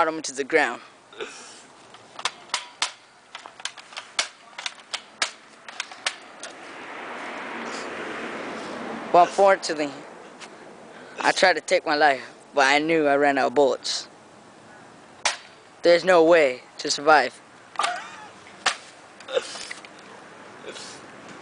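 A toy rifle snaps with sharp clicks as it is cocked and fired.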